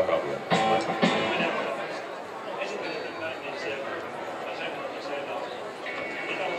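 Music plays through loudspeakers outdoors.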